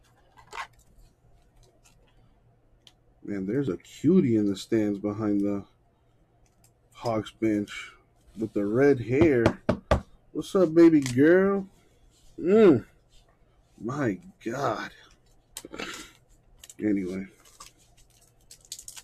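Trading cards rustle and flick as they are flipped through by hand.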